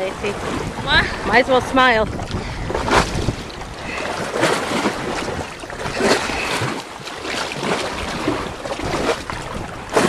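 Shallow water splashes and laps.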